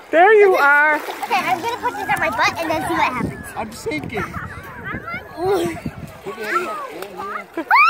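A young girl talks and laughs cheerfully close by.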